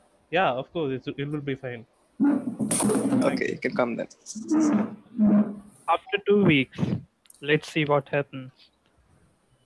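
A young man talks with animation through an online call.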